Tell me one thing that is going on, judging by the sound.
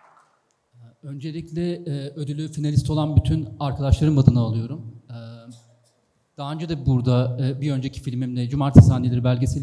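A young man speaks calmly into a microphone over loudspeakers in a large hall.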